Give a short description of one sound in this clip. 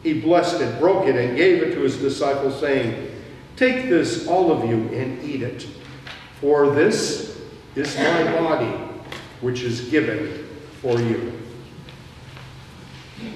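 An elderly man speaks in a steady chanting voice through a microphone in an echoing hall.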